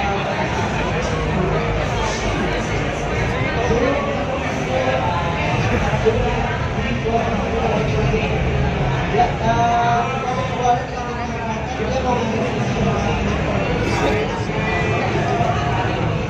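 A crowd murmurs and chatters in a busy, echoing hall.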